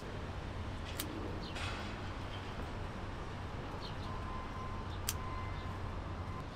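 Scissors snip through plant stems.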